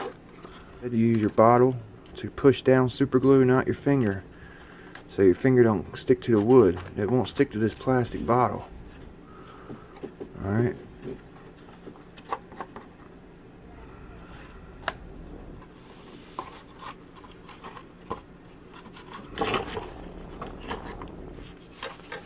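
Small wooden parts tap and click lightly.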